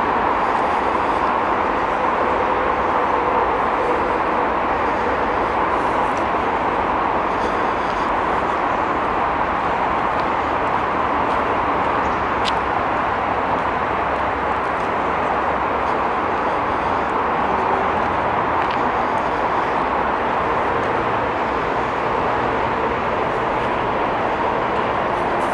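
Bicycle tyres roll steadily over a gravel path.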